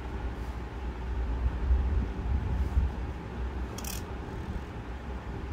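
A reed pen scratches softly on paper.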